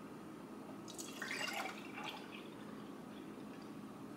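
Thick liquid pours softly into a glass jar.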